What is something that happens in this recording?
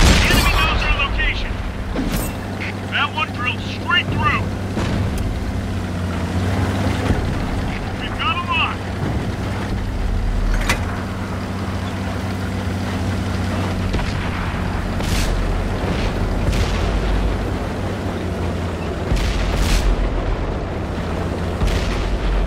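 Tank tracks clatter over rough ground.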